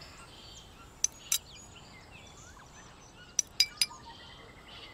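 Metal clinks sharply a few times.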